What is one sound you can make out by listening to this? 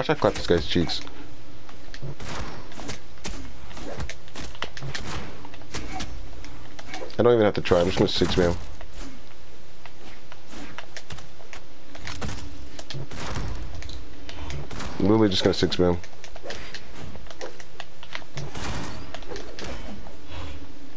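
Punchy cartoon blows land with quick thuds and whooshes.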